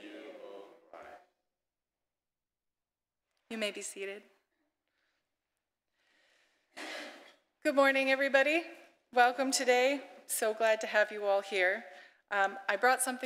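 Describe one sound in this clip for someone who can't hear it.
A young woman speaks with animation through a microphone in a reverberant hall.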